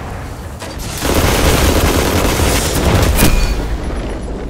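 Gunfire and an explosion roar loudly.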